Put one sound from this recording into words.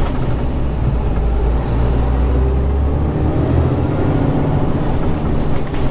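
A truck engine rumbles steadily from inside the cab while driving.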